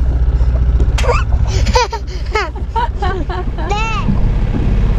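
A toddler laughs and squeals nearby.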